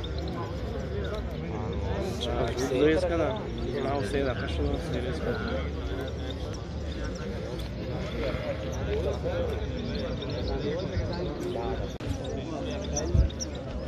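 Small birds chirp and twitter close by.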